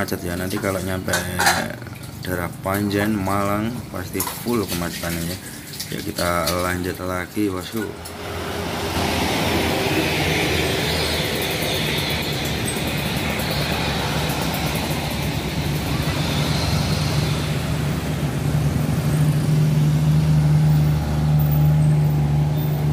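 Car and motorcycle engines hum as traffic moves slowly past.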